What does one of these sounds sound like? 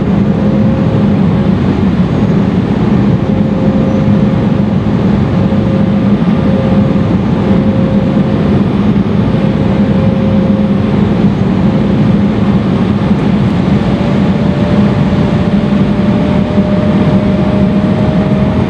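Rushing air hisses loudly along the outside of an airliner.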